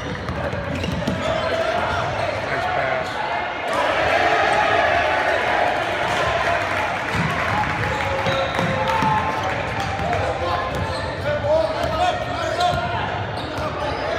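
Basketball sneakers squeak and pound on a court floor.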